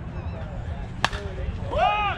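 A bat strikes a softball with a sharp crack.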